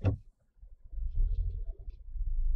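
A passing car rolls by nearby.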